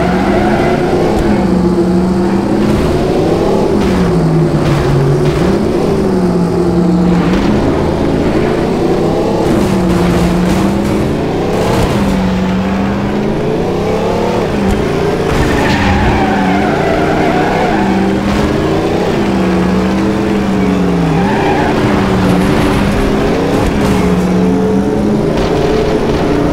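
A car engine revs up and down loudly as it races.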